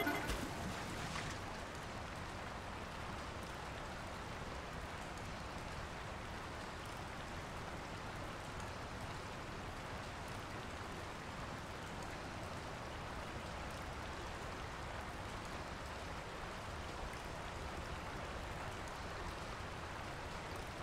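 Water rushes and splashes past a moving boat.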